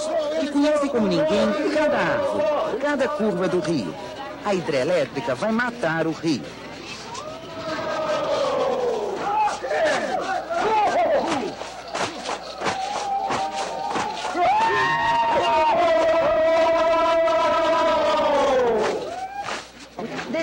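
A crowd of men chant and sing loudly together outdoors.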